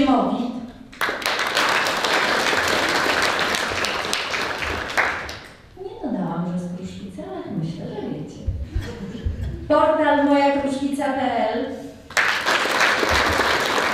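An audience applauds warmly.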